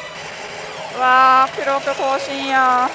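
A gaming machine blares a loud, sustained singing jingle.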